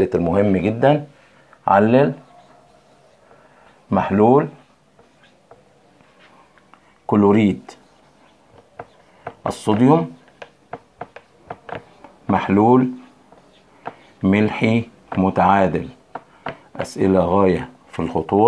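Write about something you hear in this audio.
A middle-aged man speaks in short bursts, explaining calmly up close.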